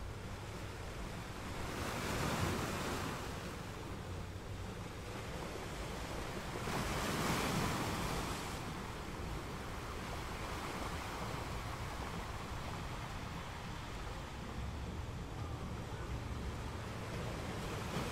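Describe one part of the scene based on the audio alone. Ocean waves crash and roar steadily against rocks, swelling now and then.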